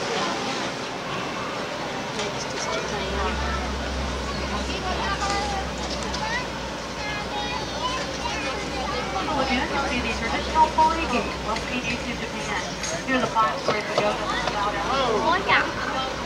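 A crowd of people chatters and talks outdoors.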